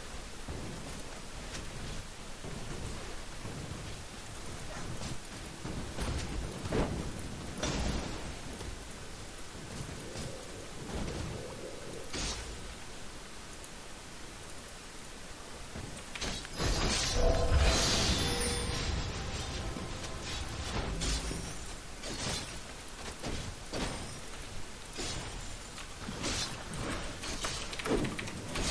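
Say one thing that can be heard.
Magic blasts and weapon hits crackle and thump in a fast fight.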